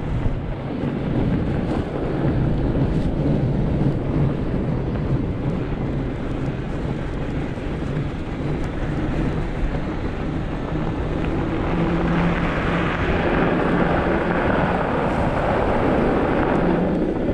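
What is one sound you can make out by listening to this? An electric bike motor whines steadily.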